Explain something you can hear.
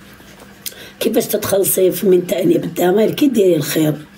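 A young woman speaks close to the microphone with animation.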